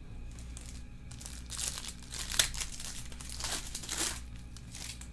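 A foil card wrapper crinkles and rustles as it is torn open.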